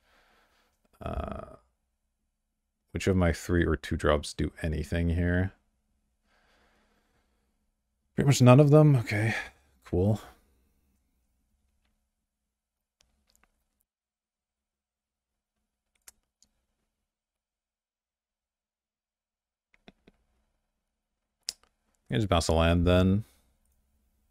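A young man speaks calmly and casually into a close microphone, in short bursts with pauses.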